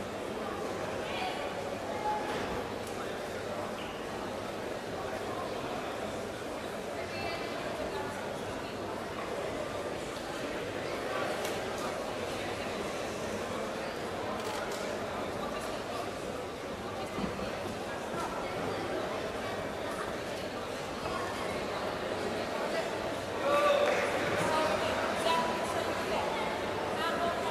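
A large crowd murmurs and calls out in an echoing arena.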